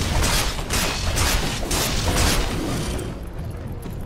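Blows strike rapidly in a fight.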